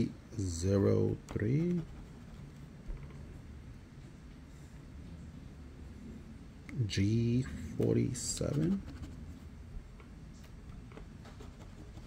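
A coin scratches across a stiff card.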